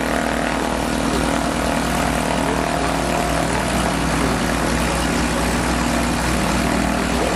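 A small propeller plane's engine drones steadily close by as it taxis past.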